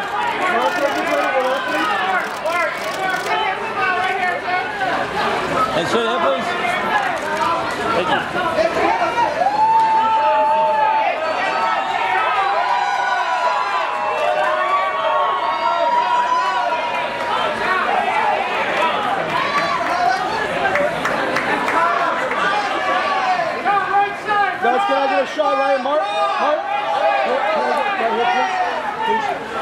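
Many voices talk and call out at once, close by.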